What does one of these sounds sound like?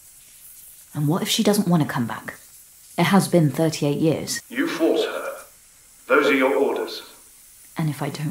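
A woman speaks calmly and quietly.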